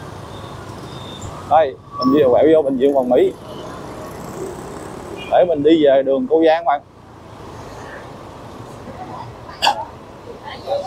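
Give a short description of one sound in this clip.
Motorbike engines and street traffic hum steadily nearby.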